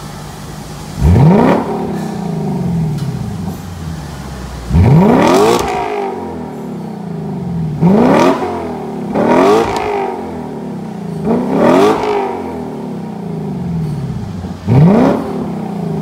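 A sports car engine revs sharply again and again, roaring through its exhaust and echoing in a large room.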